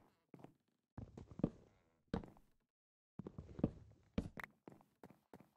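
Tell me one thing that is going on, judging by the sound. A wooden block is knocked apart and set down with dull thuds.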